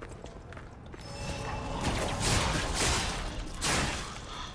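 A magical shimmer swells and fades.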